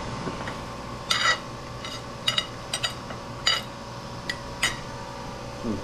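A metal spoon scrapes and clinks on a plate.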